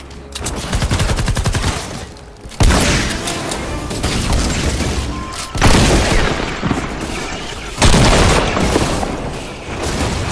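Gunshots fire in bursts from a video game.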